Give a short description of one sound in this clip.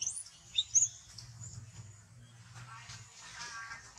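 Monkeys scamper through rustling grass.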